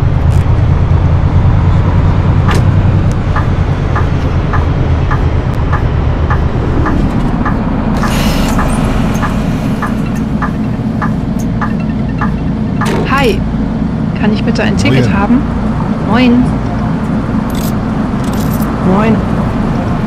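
A bus engine rumbles while driving, then settles to an idle.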